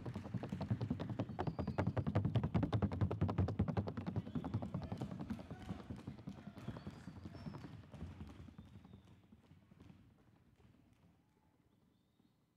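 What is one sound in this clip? Horse hooves drum rapidly on a hard surface.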